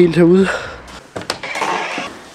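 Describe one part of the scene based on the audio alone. A door creaks open and its latch clicks.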